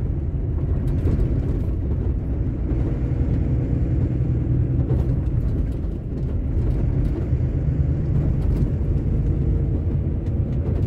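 Tyres roll over a rough road with small knocks.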